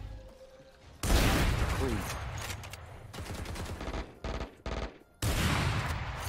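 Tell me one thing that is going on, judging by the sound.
A sniper rifle fires loud, booming shots.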